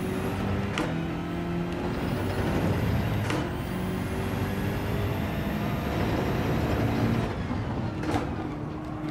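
Gear changes crack sharply.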